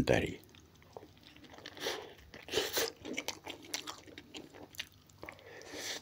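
A man chews bread noisily close by.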